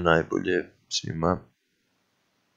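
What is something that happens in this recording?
A man speaks calmly and close up.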